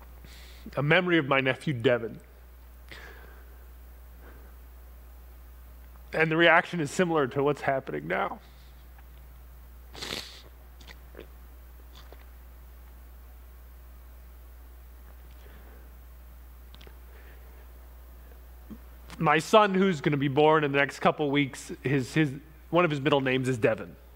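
A man speaks with animation into a microphone, with pauses between phrases.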